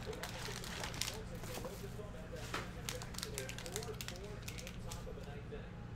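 A foil pack rustles and crackles in hands.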